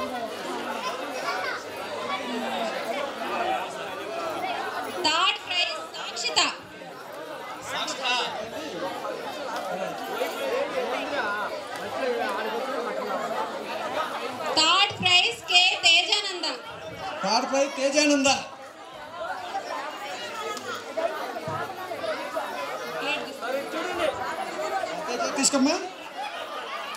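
A man speaks into a microphone over a loudspeaker, announcing with animation in a large echoing space.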